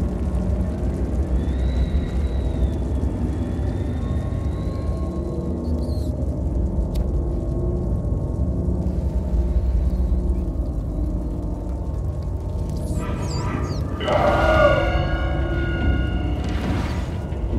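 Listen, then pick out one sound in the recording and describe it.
Small footsteps patter softly on metal.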